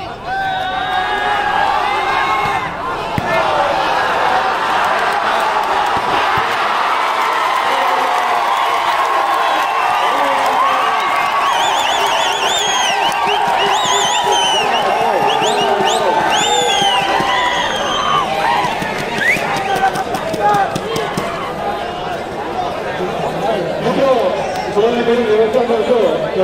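Men on a court shout to one another.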